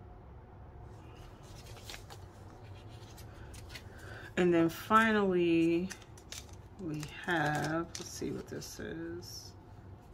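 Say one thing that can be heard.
Sheets of paper rustle and crinkle as they are handled.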